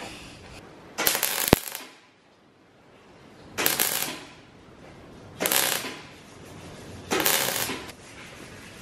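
An arc welder crackles and hisses in short bursts.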